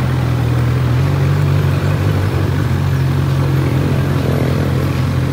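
A motorcycle engine idles with a deep, steady rumble close by.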